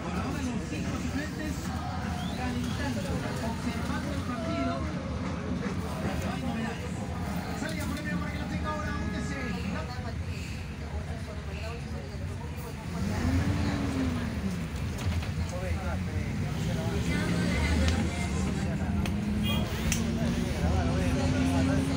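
A bus engine rumbles steadily, rising in pitch as the bus picks up speed.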